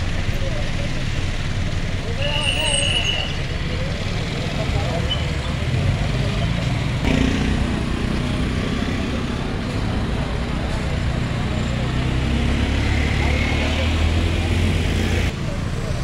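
A crowd of men talk outdoors.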